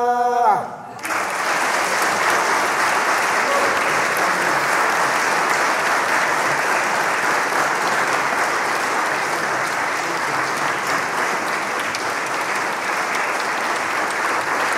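A large audience applauds steadily in an echoing hall.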